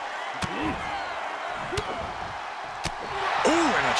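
Punches thud against a body.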